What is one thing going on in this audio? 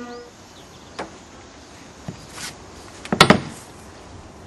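Sharp knocks and thuds sound close by.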